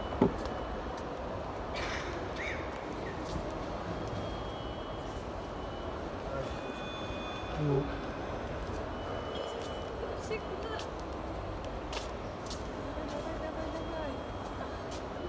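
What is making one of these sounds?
A busy indoor hall hums with a steady murmur.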